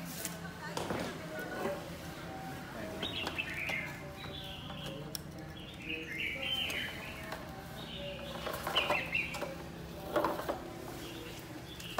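A wire cage rattles lightly.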